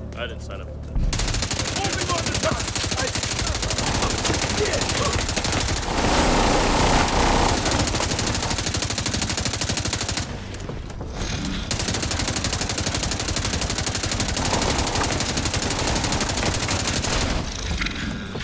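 Rifles fire in rapid, loud bursts close by.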